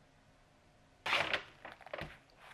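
A cardboard box is set down on a wooden table with a thud.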